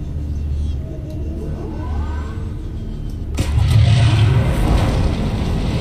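A large creature roars and growls close by.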